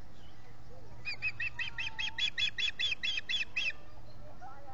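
A bird of prey gives a rapid series of high, piping chirps.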